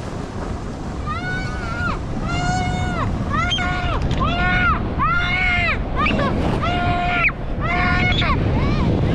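A young child squeals with excitement over and over.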